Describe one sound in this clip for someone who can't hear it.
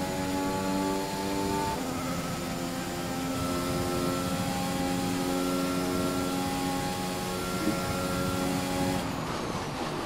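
A racing car engine screams at high revs, holding a steady pitch.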